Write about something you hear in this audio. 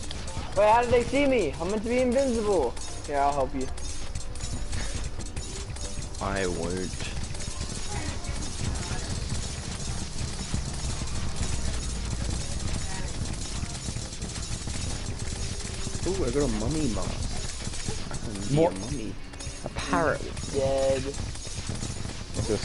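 Video game combat effects crackle and pop rapidly.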